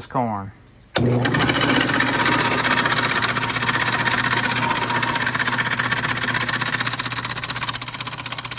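An electric motor starts with a click and runs with a loud, steady rattling hum.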